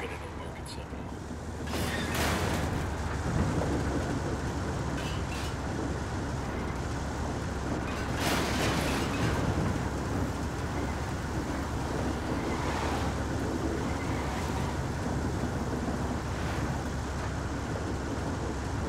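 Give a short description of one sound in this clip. A heavy vehicle's engine rumbles steadily as it drives along.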